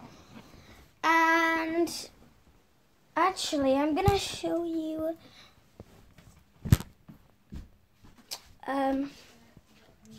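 A young girl sings and talks close by, in a high voice.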